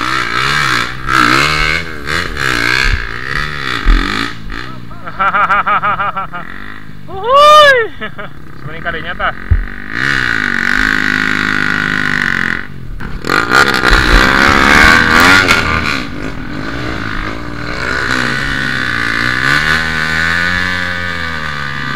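Dirt bike engines rev and idle close by.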